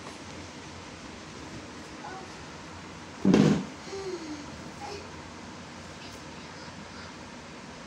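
A blanket rustles as it is pulled about.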